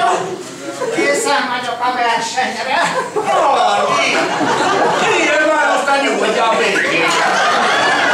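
A woman sings through a microphone and loudspeakers.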